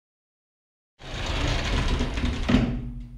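A door creaks open with a low rumble.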